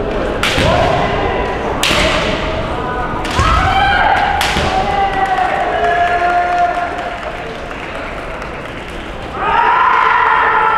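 Fighters shout loud, drawn-out battle cries.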